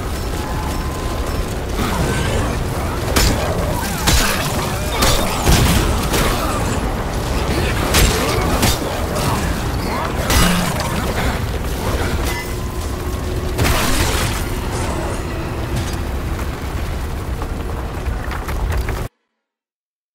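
Monsters snarl and screech up close.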